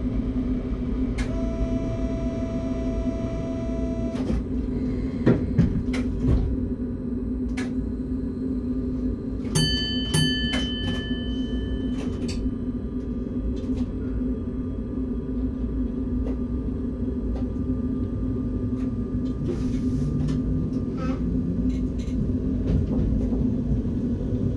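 A train's motor hums steadily.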